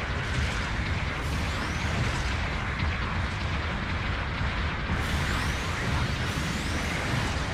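A giant robot's jet thrusters roar steadily.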